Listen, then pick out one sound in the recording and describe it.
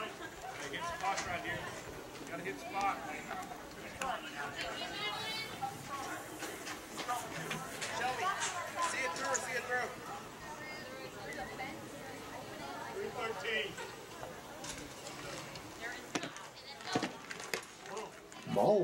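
Spectators chatter and call out outdoors.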